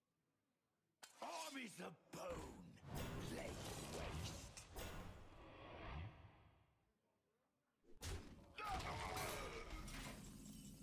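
Loud video game sound effects burst and swirl.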